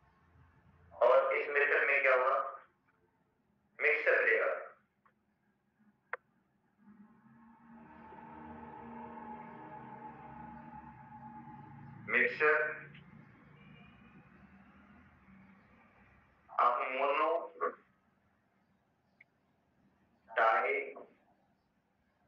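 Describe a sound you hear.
A man speaks in short bursts through a clip-on microphone, explaining calmly.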